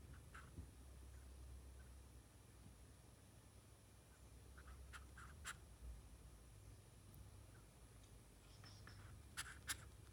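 A squirrel makes soft clicking chatter up close.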